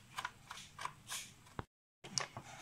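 A screwdriver scrapes and clicks against a metal bolt.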